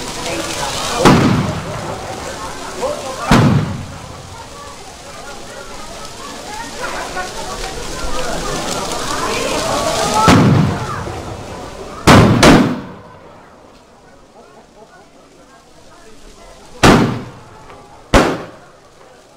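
Loud sharp bangs burst from the fire now and then.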